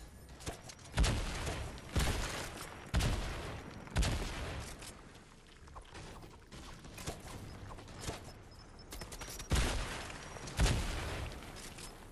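Gunshots fire loudly in quick bursts.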